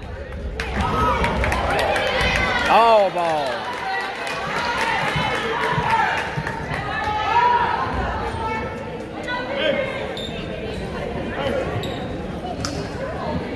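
A basketball bounces on a hardwood court.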